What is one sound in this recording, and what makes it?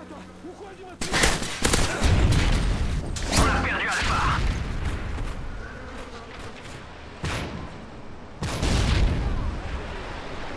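Gunfire rattles in loud, sharp bursts.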